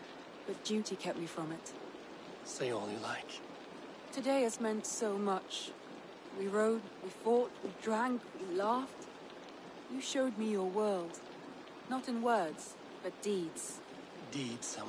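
A young woman speaks warmly and softly, close by.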